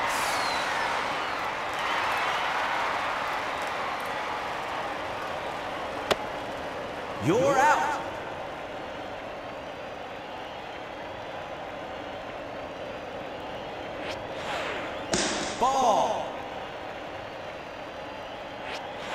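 A stadium crowd cheers loudly and slowly fades to a murmur.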